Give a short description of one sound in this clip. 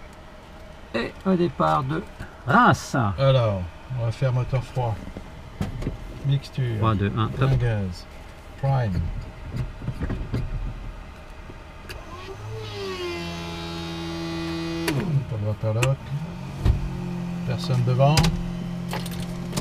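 A middle-aged man speaks calmly through a headset intercom.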